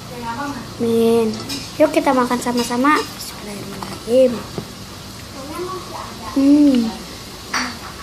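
A young girl speaks calmly, close to the microphone.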